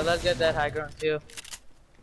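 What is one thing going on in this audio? A gun fires sharp shots close by.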